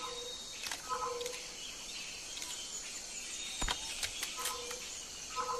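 A gun clicks and rattles as it is handled.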